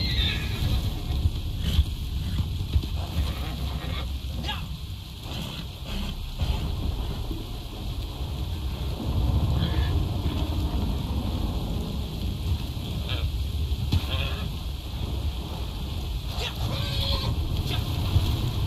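A horse's hooves thud on grassy ground.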